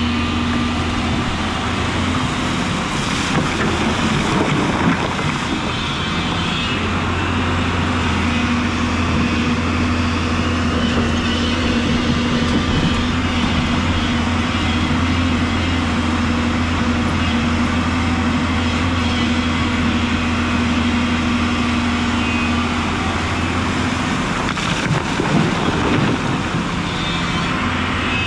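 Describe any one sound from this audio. A river rushes and splashes steadily nearby.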